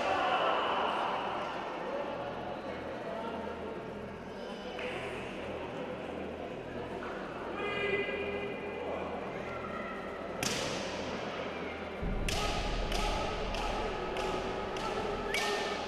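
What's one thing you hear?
Fighters shout loudly and sharply.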